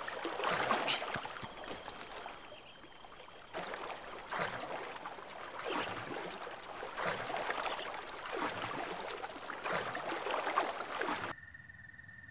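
Water splashes as a figure wades and swims.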